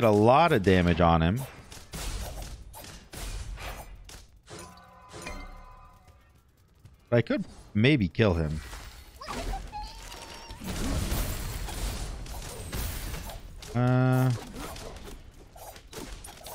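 Swords clash and magic bursts crackle in a video game fight.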